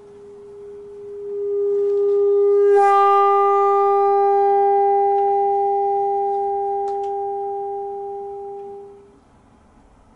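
A bassoon plays a long, steady note that swells and then fades away.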